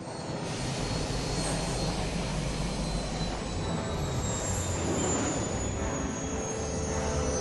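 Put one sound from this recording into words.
A spacecraft's engines roar steadily as it hovers and lifts off.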